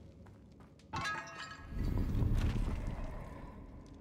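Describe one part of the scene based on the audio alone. Stone rubble crumbles and falls with a dusty rumble.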